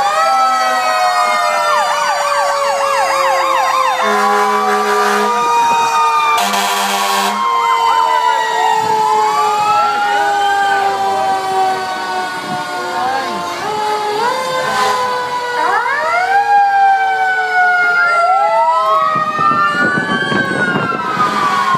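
A heavy truck engine rumbles past.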